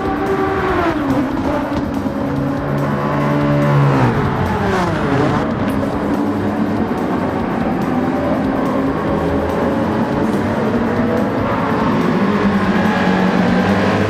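Racing car engines roar and rev as cars speed past.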